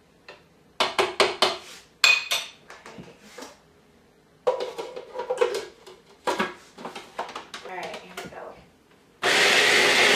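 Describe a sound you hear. A plastic lid clicks and clatters into place.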